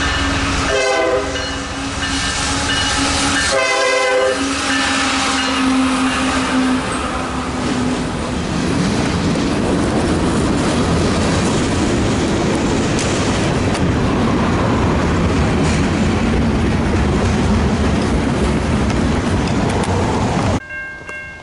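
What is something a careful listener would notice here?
A freight train rumbles past close by, wheels clattering on the rails.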